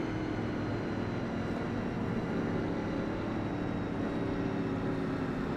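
Several other race car engines drone nearby.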